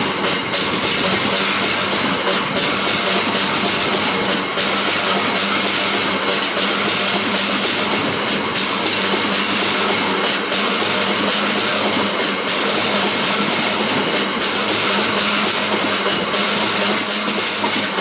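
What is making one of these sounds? Steel wheels squeal and click over rail joints.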